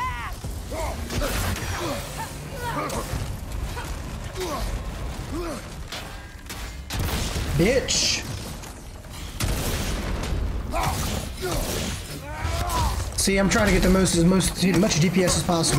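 Icy magic blasts crackle and burst.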